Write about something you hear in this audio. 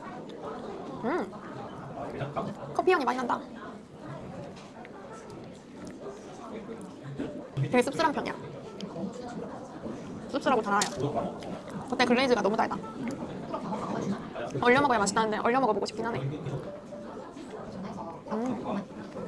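A young woman speaks softly and with delight close to a microphone.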